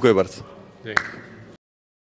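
Hands clap together once.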